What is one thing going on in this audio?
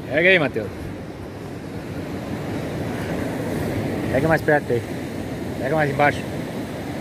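A man speaks loudly in short bursts close by.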